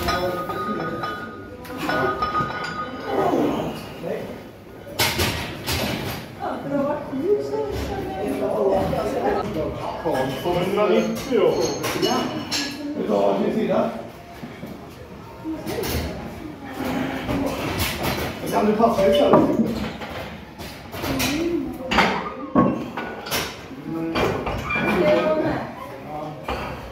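Weight plates on a barbell clank.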